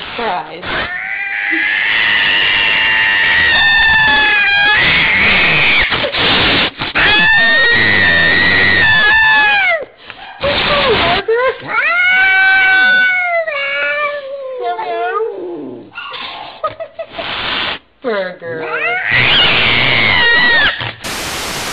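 A cat yowls and hisses loudly.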